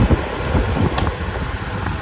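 A fan's switch clicks.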